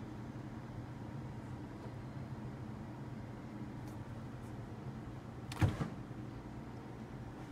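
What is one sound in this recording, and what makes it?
A kettle rumbles softly as it heats on a stove.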